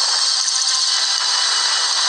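Game laser shots zap rapidly.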